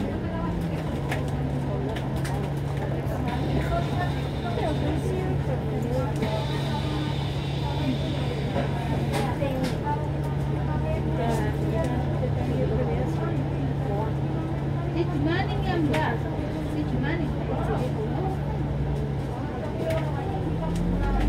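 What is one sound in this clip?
A bus engine hums steadily from below.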